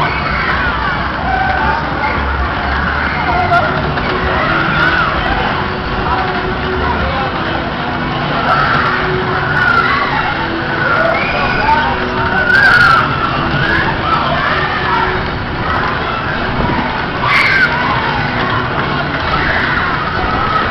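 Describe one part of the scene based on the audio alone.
Loud fairground music with a thumping beat plays throughout.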